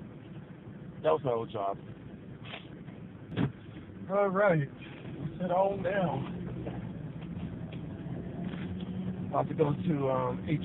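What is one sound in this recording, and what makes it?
A man talks nearby inside a car, in short bursts with animation.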